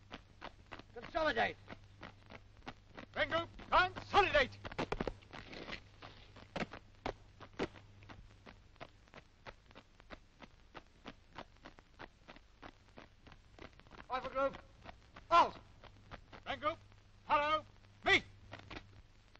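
A man shouts drill commands outdoors.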